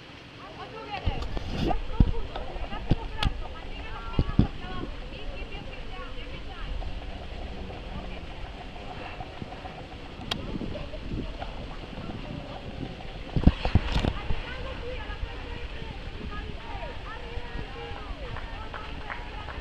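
Adults talk and call out outdoors at a distance.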